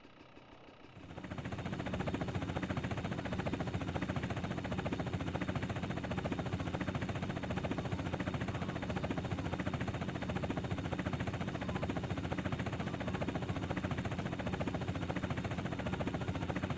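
A helicopter's rotor thumps rapidly and steadily.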